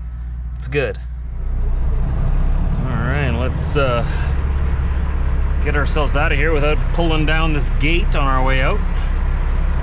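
A man talks casually up close.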